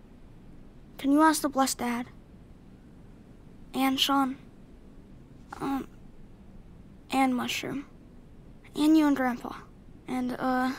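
A young boy speaks quietly and close by.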